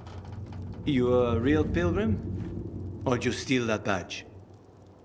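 A man speaks calmly and gruffly, close by.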